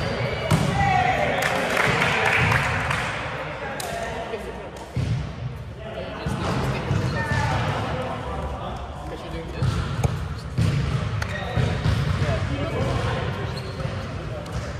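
Young adults talk and call out in a large echoing hall.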